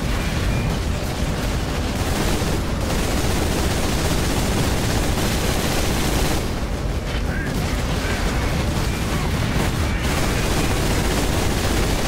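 Heavy gunfire blasts in a rapid, continuous roar.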